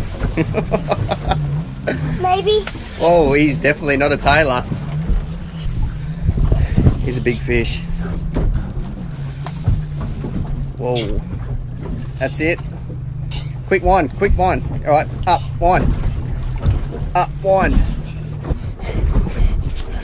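A fishing reel whirs as it is wound in.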